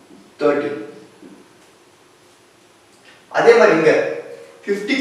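A young man speaks in a lecturing tone, close by.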